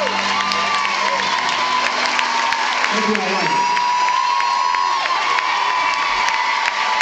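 An audience screams and cheers loudly in a large hall.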